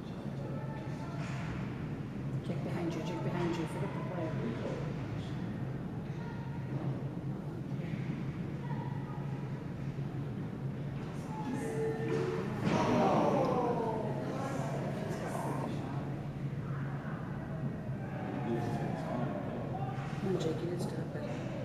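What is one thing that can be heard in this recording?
Spectators talk and call out nearby in a large echoing arena.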